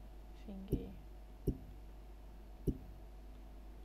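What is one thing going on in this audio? Menu selection clicks sound.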